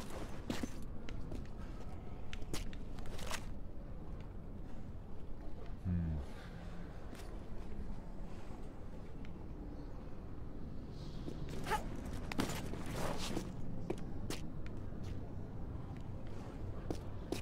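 Footsteps scuff and tap on stone.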